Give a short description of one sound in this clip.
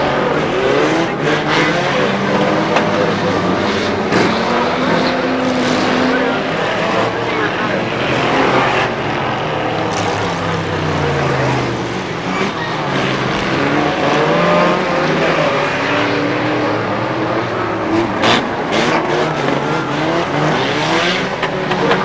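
Car bodies crash and bang against each other.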